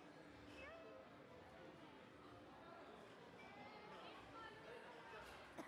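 Stroller wheels roll over a smooth floor.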